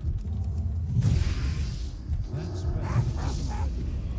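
A spell bursts with a fiery crackle.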